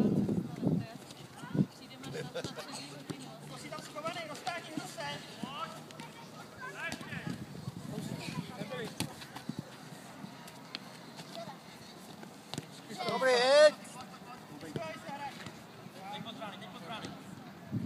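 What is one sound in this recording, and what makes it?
Children shout and call out across an open playing field.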